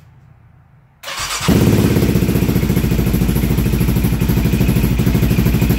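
A quad bike's engine cranks and starts, then idles loudly with a fast, rough throb.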